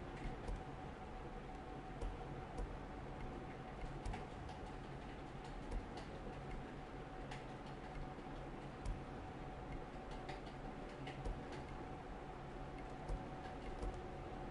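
Short soft menu clicks sound again and again.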